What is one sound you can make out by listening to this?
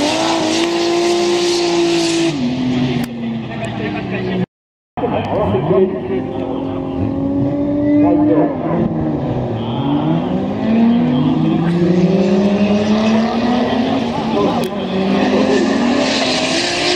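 Tyres screech as cars slide sideways.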